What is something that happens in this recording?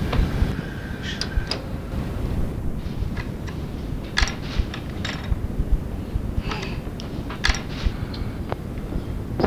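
Paper crinkles and rustles as a lid is peeled back.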